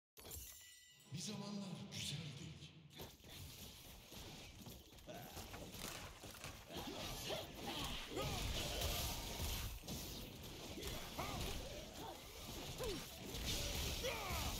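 Fighting sound effects clash and crackle from a video game battle.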